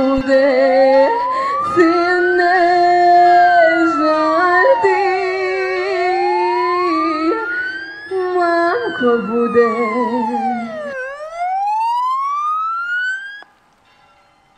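A police siren wails loudly, rising and falling, then cuts off.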